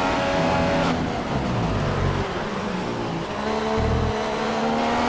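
A Formula One car engine drops in pitch as it downshifts under braking.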